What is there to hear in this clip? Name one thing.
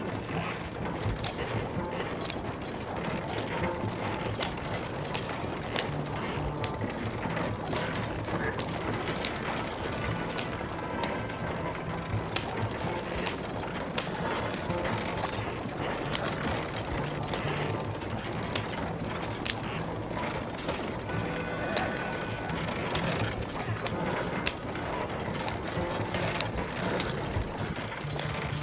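A horse's hooves clop on wooden sleepers.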